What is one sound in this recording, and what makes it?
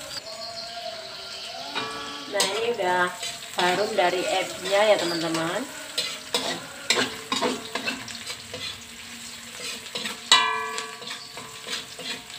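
Food sizzles gently in a hot pan.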